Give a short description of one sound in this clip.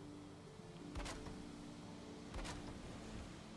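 Wooden wall pieces knock into place with short thuds.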